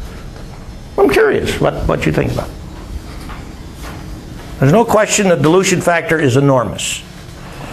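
An elderly man lectures calmly, with long pauses between phrases.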